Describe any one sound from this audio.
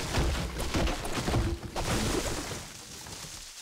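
A pickaxe strikes rock with heavy thuds.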